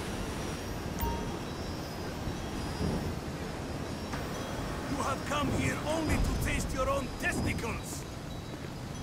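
A jetpack's thrusters roar as it hovers and sets down.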